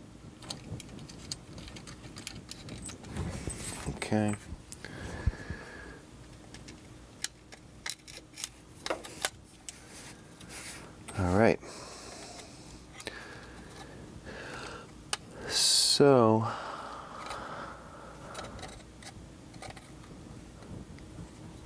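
Small metal parts click and rattle as hands handle a device.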